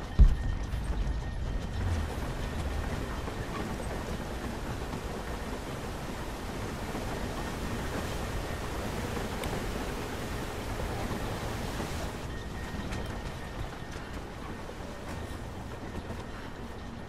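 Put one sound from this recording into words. Water rushes and roars steadily nearby.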